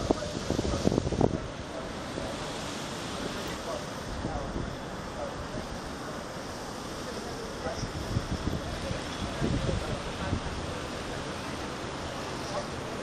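A city hums steadily far below.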